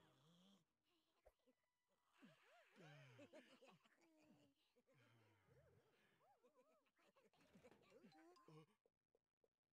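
High, squeaky cartoon voices chatter excitedly.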